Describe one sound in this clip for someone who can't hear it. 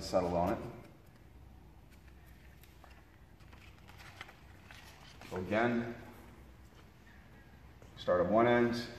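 Masking tape peels and crinkles.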